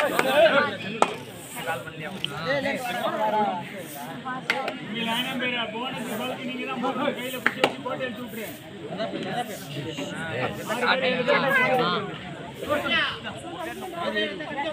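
A crowd of young men shouts and cheers loudly outdoors.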